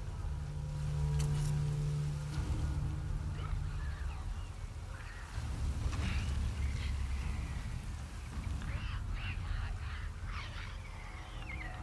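Footsteps crunch slowly over rubble and undergrowth.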